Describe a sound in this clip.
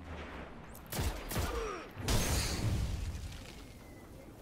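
Gunfire and explosions burst loudly in a video game.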